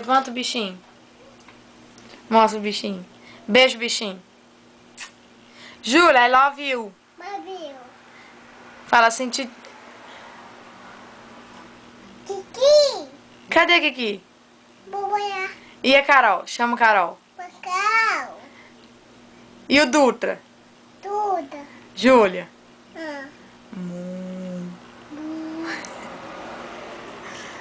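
A toddler girl speaks and babbles in short bursts close by.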